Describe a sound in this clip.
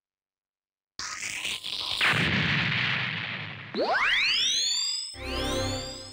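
A whooshing energy blast fires.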